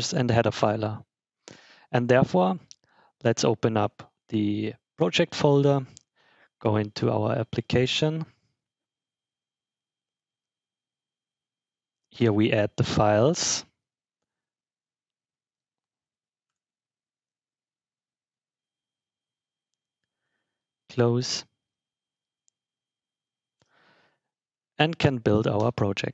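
A young man speaks calmly into a headset microphone.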